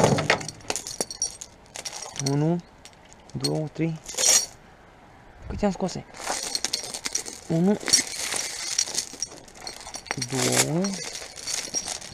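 A metal chain rattles and clinks as it is handled.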